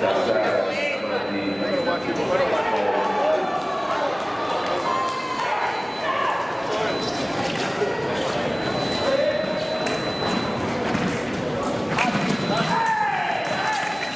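Feet stamp and shuffle on a metal fencing strip in a large echoing hall.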